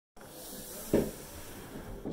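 Hands thump down on a wooden table.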